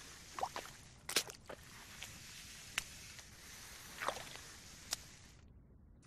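Footsteps splash through shallow water on rock.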